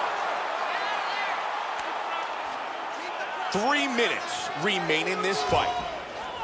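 A crowd roars and cheers steadily.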